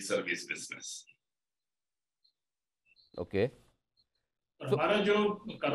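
An elderly man speaks calmly through a microphone, as in a remote interview.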